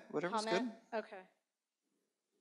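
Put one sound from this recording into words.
A man speaks briefly into a microphone, heard through a loudspeaker.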